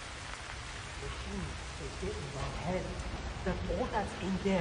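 A man speaks calmly and muttering, close by.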